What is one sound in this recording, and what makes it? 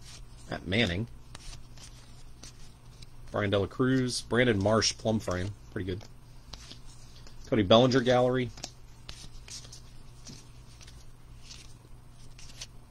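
Cards rustle and slide against each other.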